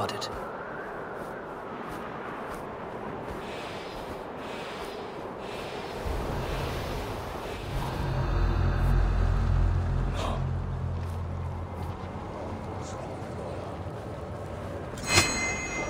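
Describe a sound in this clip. Wind rushes steadily past a gliding bird.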